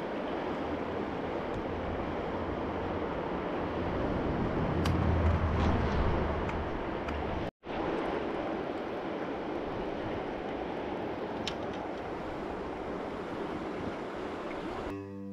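A river rushes loudly nearby.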